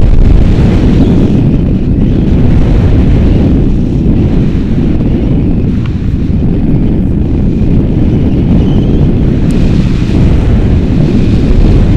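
Strong wind rushes and buffets loudly past a microphone, outdoors high in the air.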